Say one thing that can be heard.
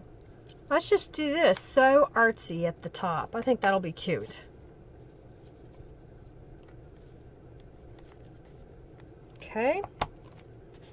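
A middle-aged woman talks calmly into a close microphone.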